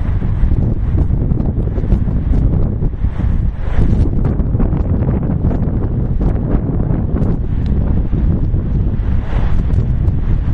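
Strong wind buffets the microphone outdoors with a low, steady rumble.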